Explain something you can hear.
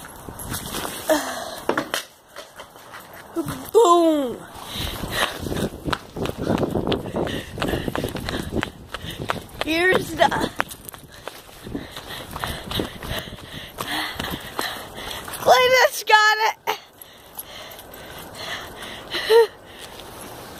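A dog yelps and whines in short, high cries.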